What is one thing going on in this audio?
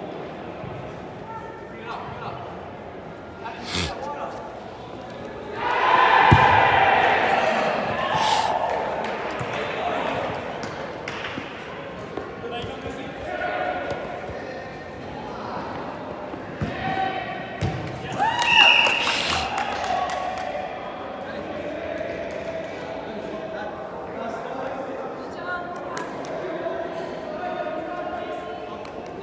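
Young players shout and call out to each other in an echoing hall.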